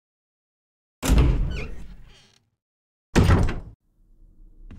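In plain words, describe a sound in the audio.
A heavy door creaks open and thuds.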